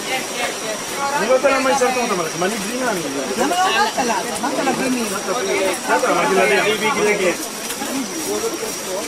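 A group of adult men and women chatter close by.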